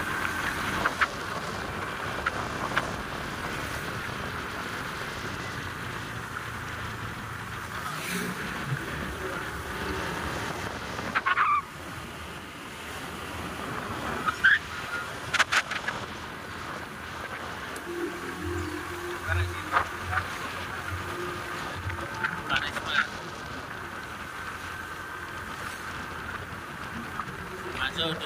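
A motorcycle engine hums steadily close by while riding along a road.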